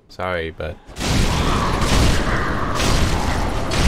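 A loud, rumbling roar of combat breaks out and keeps on.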